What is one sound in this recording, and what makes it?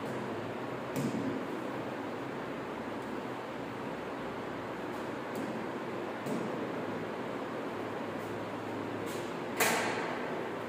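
A stylus taps against a touch board.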